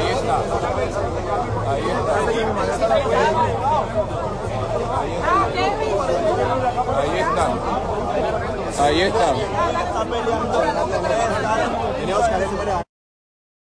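A crowd of men talks and shouts over one another close by.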